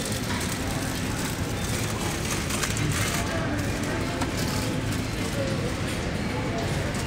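Plastic egg cartons rustle and clack as they are handled.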